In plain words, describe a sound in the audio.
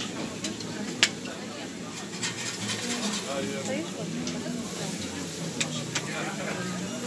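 Metal utensils clink against pans.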